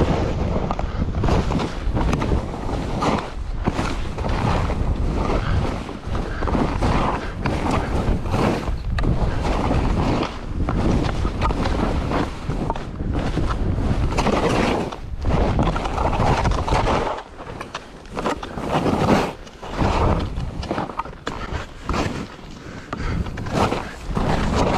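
Skis hiss and scrape through snow.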